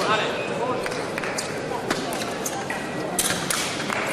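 Fencing blades clash and click sharply.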